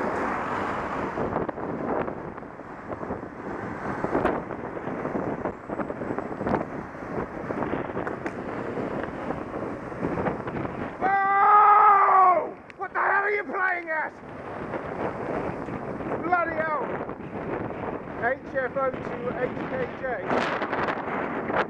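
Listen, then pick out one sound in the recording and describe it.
Wind rushes loudly past outdoors.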